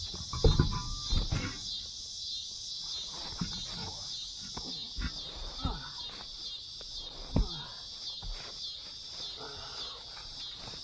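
A heavy tyre thumps against the ground.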